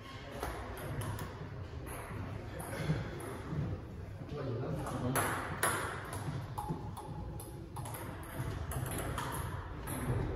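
A table tennis ball clicks on paddles and bounces on a table in a room with some echo.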